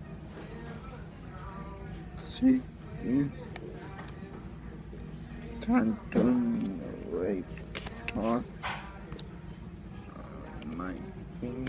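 Trading cards rustle and slide in a man's hands.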